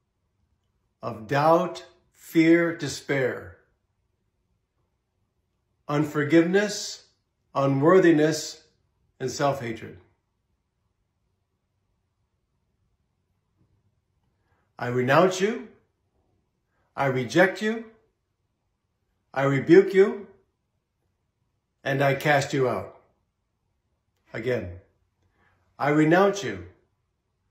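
An older man speaks slowly and solemnly into a close microphone, pausing between phrases.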